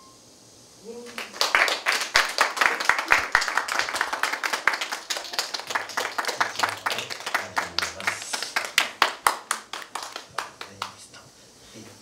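An audience claps and applauds in an echoing hall.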